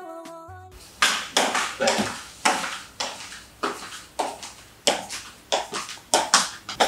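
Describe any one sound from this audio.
A woman's footsteps tap on a hard floor.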